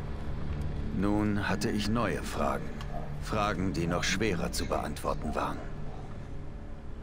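A man narrates calmly in a deep voice.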